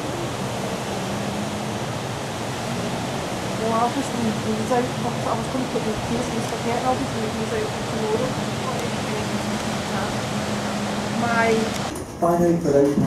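A ship's engine hums steadily and low.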